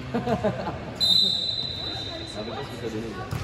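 A referee's whistle blows a short sharp blast.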